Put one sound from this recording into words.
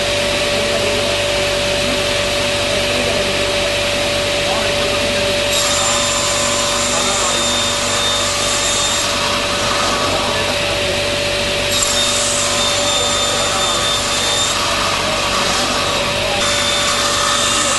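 A table saw whines steadily.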